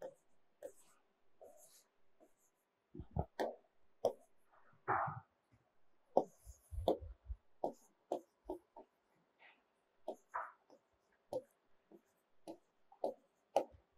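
A pen taps and scratches on a board.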